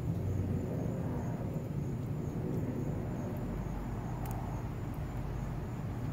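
Rain patters steadily on wet pavement.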